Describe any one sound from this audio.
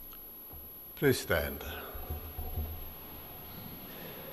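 An elderly man speaks briefly through a microphone.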